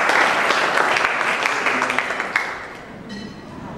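An audience claps and applauds in a room.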